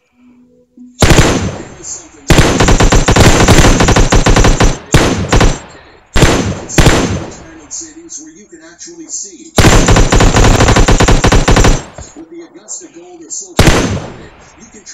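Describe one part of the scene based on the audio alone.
An automatic rifle fires in loud, rapid bursts.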